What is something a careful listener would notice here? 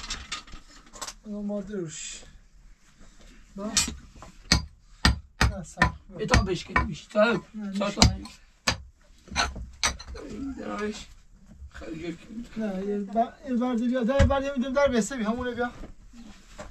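A young man talks calmly nearby.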